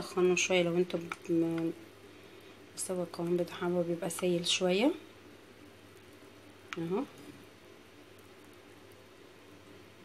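A plastic spoon stirs batter in a bowl.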